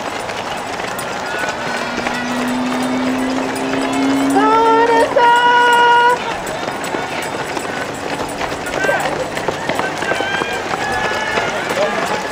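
A crowd of spectators cheers and shouts close by, outdoors.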